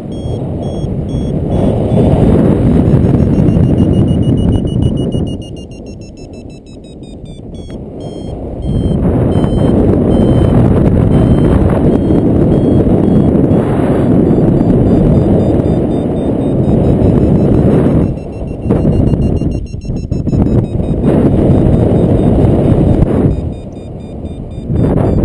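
Wind rushes and buffets past a paraglider in flight.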